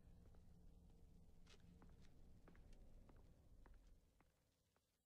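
Footsteps tap softly on a hard floor.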